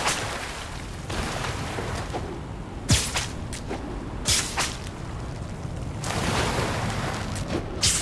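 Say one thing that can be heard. A rope line zips and whooshes past through the air.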